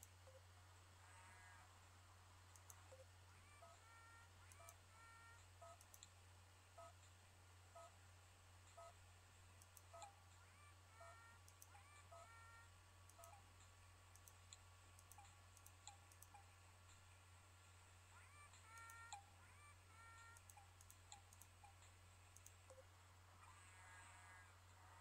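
Short electronic game chimes blip again and again.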